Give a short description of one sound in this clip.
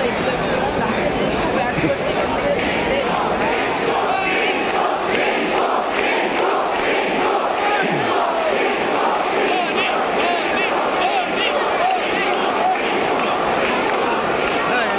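A crowd claps and chants in a steady rhythm.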